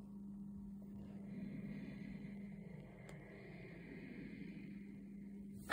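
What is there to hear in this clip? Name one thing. A low electronic tone hums steadily from a small tablet speaker.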